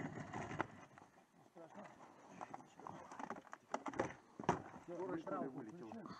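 Wooden planks knock and clatter underfoot.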